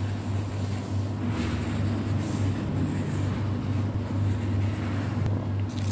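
A marker squeaks as it draws across paper.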